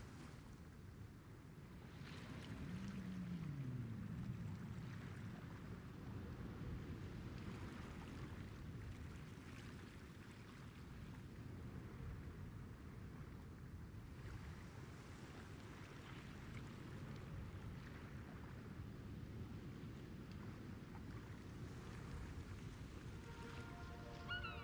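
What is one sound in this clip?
Water laps and washes steadily against a large ship's hull.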